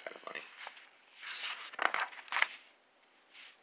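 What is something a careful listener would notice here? Paper rustles as a hand rubs across a book page.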